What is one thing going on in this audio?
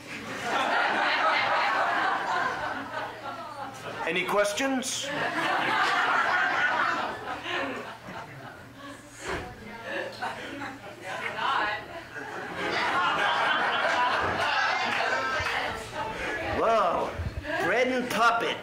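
An elderly man speaks expressively and theatrically, close by.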